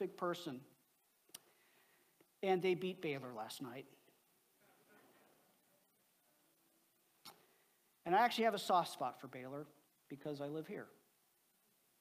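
A man speaks calmly into a microphone, heard through loudspeakers in a large hall, with pauses between phrases.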